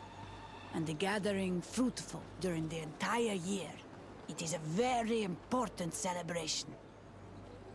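A woman speaks calmly and clearly.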